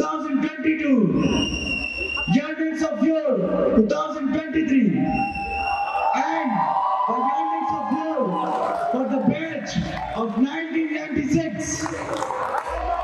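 A young man speaks calmly into a microphone, heard through loudspeakers in a large echoing hall.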